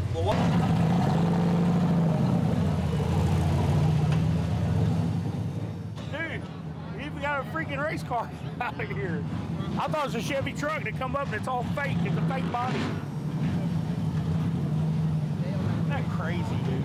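A truck engine idles with a deep, throbbing rumble.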